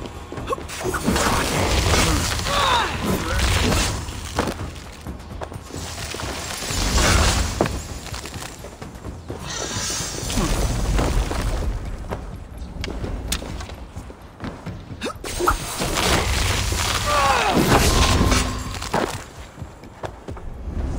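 Weapons clash and strike with heavy thuds.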